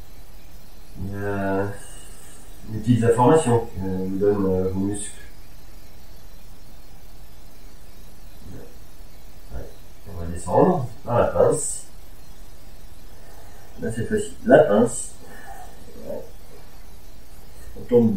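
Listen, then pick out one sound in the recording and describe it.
A man speaks calmly and slowly, as if guiding an exercise.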